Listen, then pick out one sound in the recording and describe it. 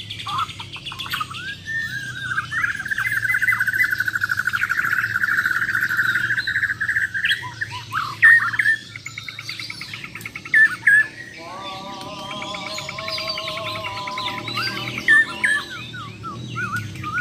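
Caged songbirds chirp and trill loudly and rapidly close by.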